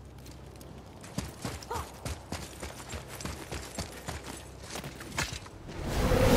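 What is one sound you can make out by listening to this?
Heavy footsteps crunch on rough ground.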